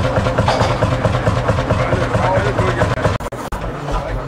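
An old tractor engine chugs loudly and steadily nearby.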